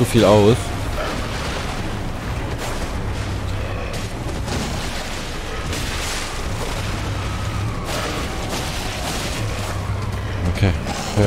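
Blades swing and strike with heavy blows.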